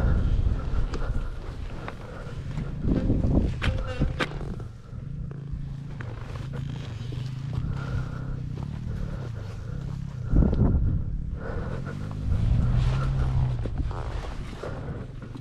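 Gloved hands scoop and scrape at loose sand.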